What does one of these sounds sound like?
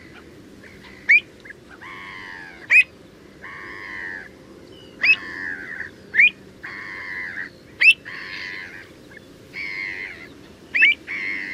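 A wading bird gives sharp, high, piping calls again and again.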